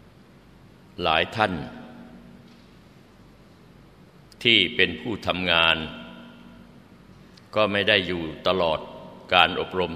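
An elderly man speaks slowly, in short phrases with long pauses.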